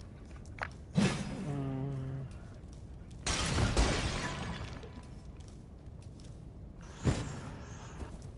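Clay pots smash and shatter on a stone floor.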